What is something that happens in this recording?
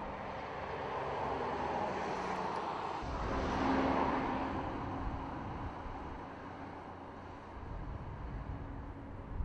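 A car engine hums as a car drives past and away.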